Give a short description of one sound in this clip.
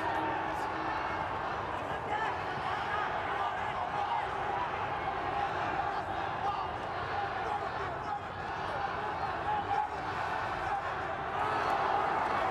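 Gloves thud against a boxer's body.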